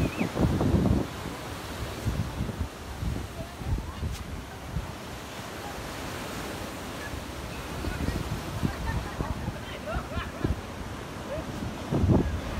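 Wind gusts and buffets loudly outdoors.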